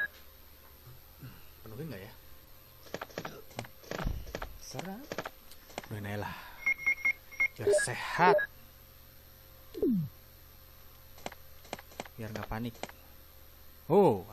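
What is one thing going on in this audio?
Buttons on a game controller click softly.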